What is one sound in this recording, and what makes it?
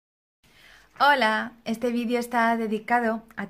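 A woman speaks cheerfully and with animation, close to a microphone.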